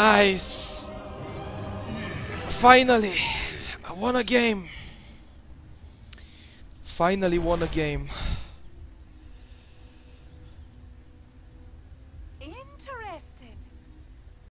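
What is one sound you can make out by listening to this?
A young man speaks excitedly into a close microphone, his voice rising and falling.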